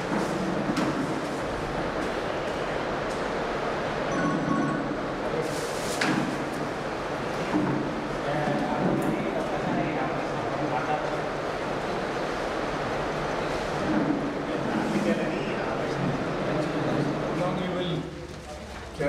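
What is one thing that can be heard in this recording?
A crowd of men chatter and murmur together indoors.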